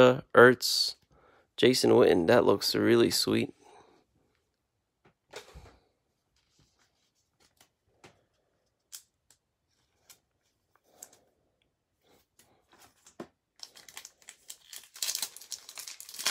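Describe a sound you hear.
Trading cards rustle and click softly as they are handled.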